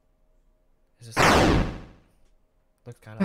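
A game sound effect sweeps down.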